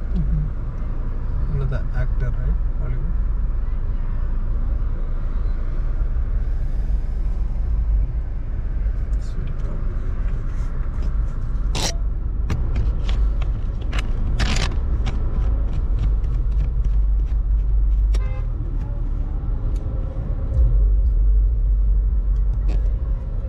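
A car engine hums low and steady from inside a car.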